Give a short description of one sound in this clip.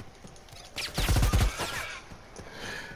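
A rifle fires a short burst.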